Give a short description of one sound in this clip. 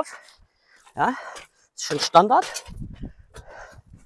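An aluminium ladder rattles as a man climbs it.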